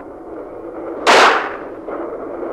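A pistol fires a single loud shot outdoors.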